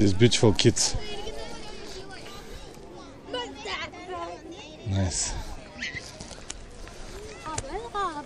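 Young children chatter and call out nearby, outdoors.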